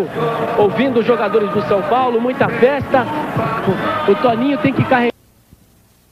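A large stadium crowd roars.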